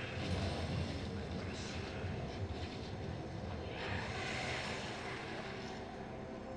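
Game sound effects chime and whoosh.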